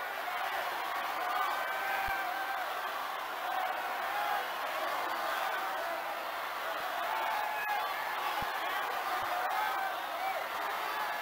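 A woman cheers and shouts excitedly.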